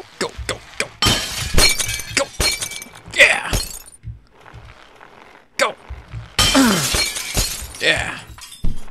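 A bicycle crashes to the ground with a clatter.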